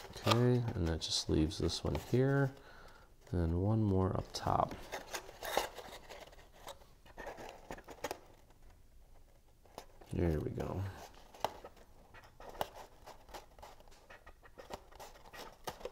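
Stiff paper crinkles and rustles as it is handled.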